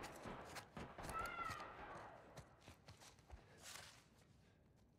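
Footsteps scrape softly on a stone floor.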